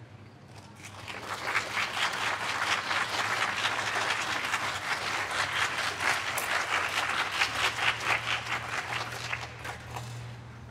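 An audience claps and applauds outdoors.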